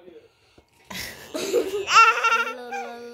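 A little girl laughs loudly.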